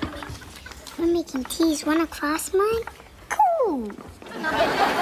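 A young girl speaks brightly and with animation, close by.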